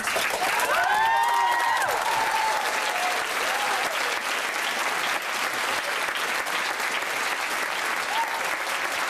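A large crowd applauds loudly in an echoing hall.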